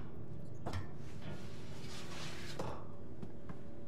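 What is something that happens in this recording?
Footsteps clank on a metal ladder.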